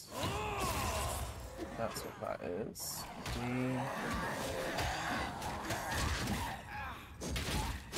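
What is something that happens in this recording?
Swords clash and spells burst in a fast fight.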